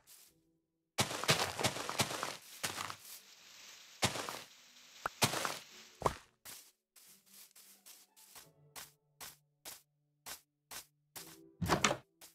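Dirt crunches in short, separate thumps as it is dug.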